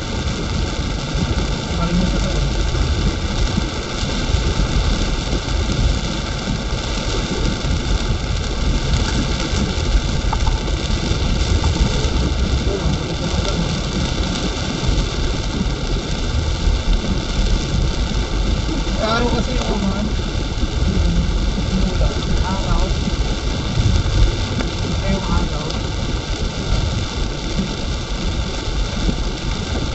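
A car engine rumbles low inside the car.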